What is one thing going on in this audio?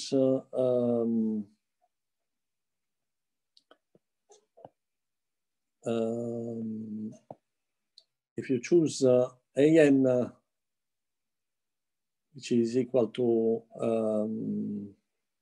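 A middle-aged man speaks calmly over an online call, pausing between phrases.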